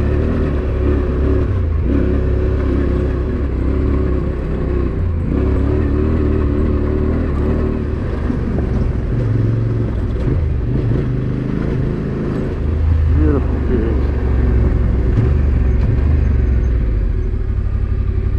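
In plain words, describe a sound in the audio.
A motorcycle engine revs and changes pitch as it rides along.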